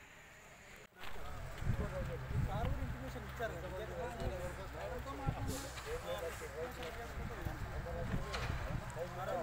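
A group of men talk among themselves outdoors.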